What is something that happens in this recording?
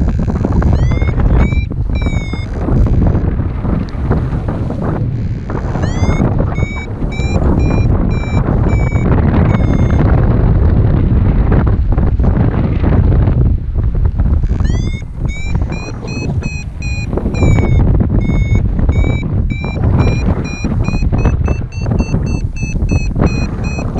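Strong wind rushes and buffets past the microphone.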